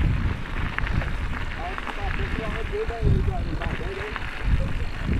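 A mountain bike rattles over bumps.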